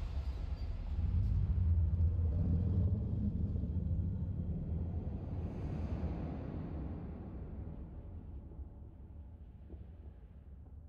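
A deep, swelling rumble rises and slowly fades away.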